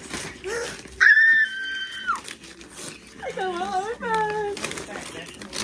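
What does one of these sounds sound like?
A young woman squeals with excitement close by.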